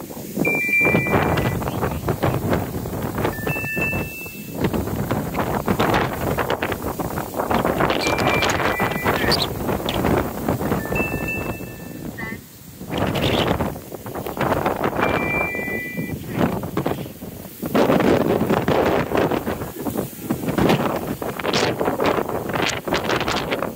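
Strong wind gusts and rushes over the microphone outdoors.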